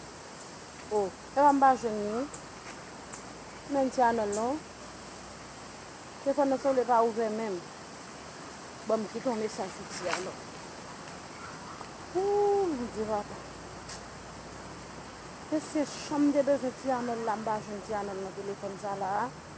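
A woman talks calmly on a phone, close by.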